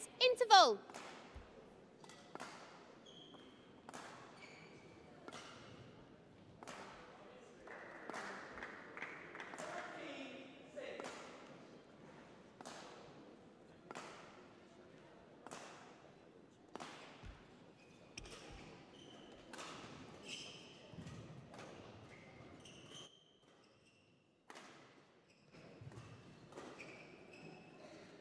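Rackets strike a shuttlecock again and again, with sharp smacks echoing through a large hall.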